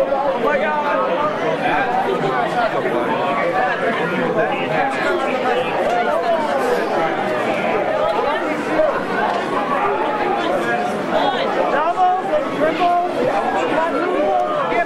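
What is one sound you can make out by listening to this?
A large crowd of men and women chatters loudly nearby in an echoing hall.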